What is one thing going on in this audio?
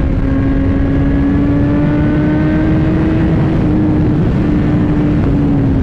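Another motorcycle passes close by.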